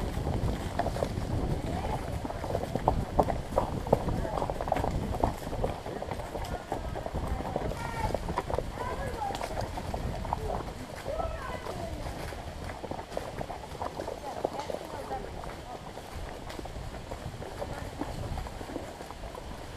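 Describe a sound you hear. Horse hooves thud and crunch on dry leaves along a trail.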